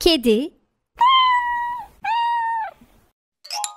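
A cat meows twice.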